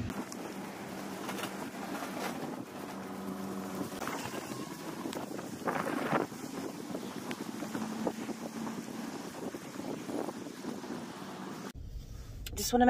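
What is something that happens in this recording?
A plastic bag rustles as it swings.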